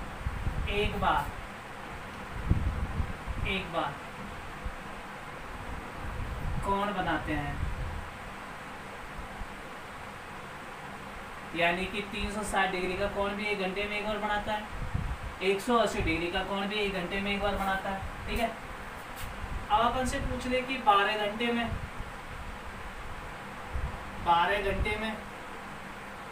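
A man speaks calmly, explaining, close by.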